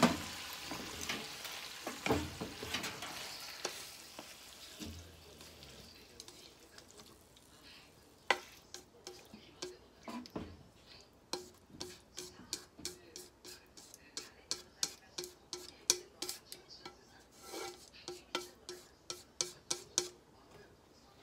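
Chopsticks tap and scrape against a pan and a plate.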